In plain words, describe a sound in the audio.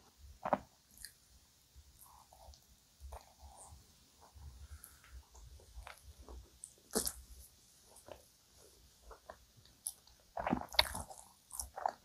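A young woman chews and smacks her lips close to the microphone.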